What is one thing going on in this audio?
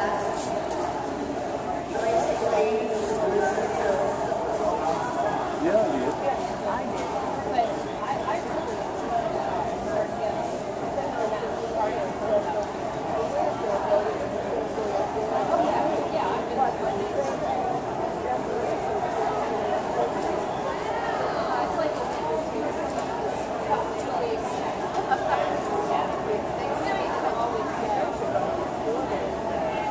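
A crowd murmurs throughout in a large echoing hall.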